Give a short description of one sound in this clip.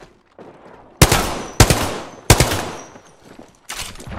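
Gunshots fire in quick bursts, loud and sharp.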